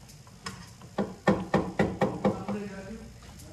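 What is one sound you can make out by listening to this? A metal ladle clinks against a pot.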